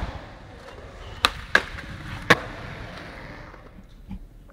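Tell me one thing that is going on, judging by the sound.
Skateboard wheels roll on smooth concrete in a large echoing hall.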